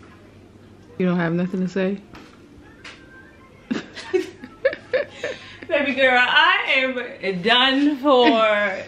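A young woman talks animatedly close by.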